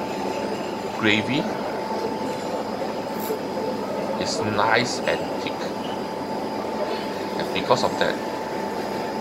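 A man eats close by, chewing and smacking his lips.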